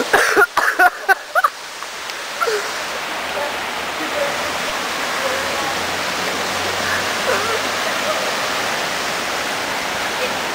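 Water gushes and splashes steadily into a pond.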